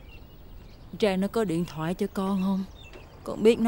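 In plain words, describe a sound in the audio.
A woman speaks in a weak, pained voice.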